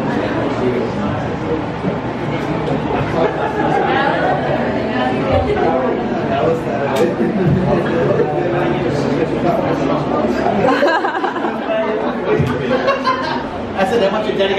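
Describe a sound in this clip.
Several men talk and chatter close by.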